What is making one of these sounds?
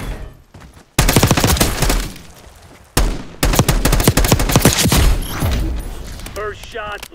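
Rapid rifle gunfire bursts loudly.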